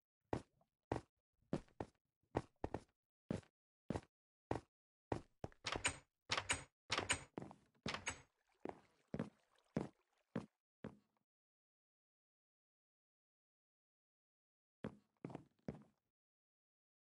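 Footsteps tap on stone blocks in a video game.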